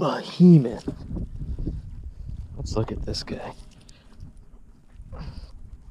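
Water pours and splashes down from a dripping fishing net.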